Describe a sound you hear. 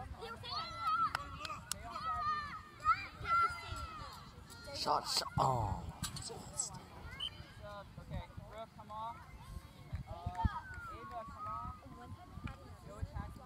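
Young girls shout and call out to each other outdoors across an open field.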